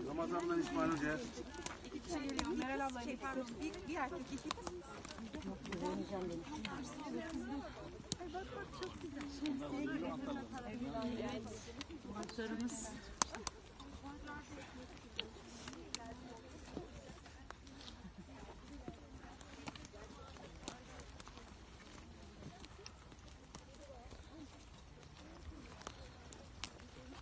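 Walking poles click on the ground.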